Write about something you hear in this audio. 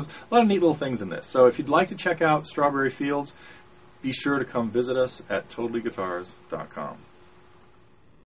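A middle-aged man speaks calmly and clearly into a nearby microphone.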